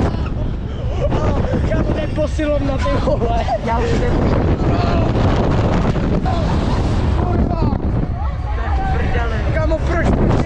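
Riders scream and shout with excitement.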